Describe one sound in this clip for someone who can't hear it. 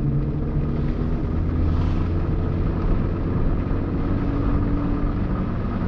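A car engine hums steadily from inside the car as it drives along a road.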